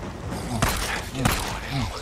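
Gunshots crack.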